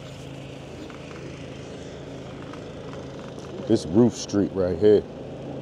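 Bicycle tyres roll over pavement.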